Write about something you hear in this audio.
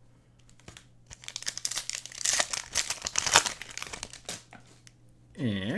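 Trading cards and foil wrappers rustle and crinkle in hands.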